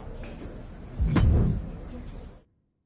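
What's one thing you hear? A low whoosh sounds as a game prompt pops up.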